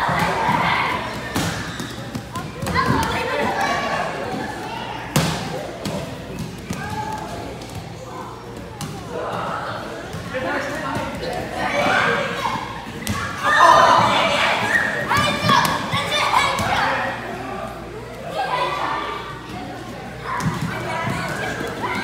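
Children chatter and call out in a large echoing hall.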